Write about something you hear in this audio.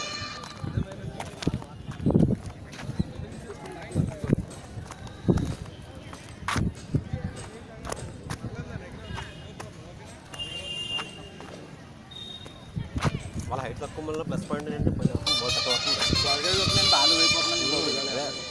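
Children shout and call out across an open field.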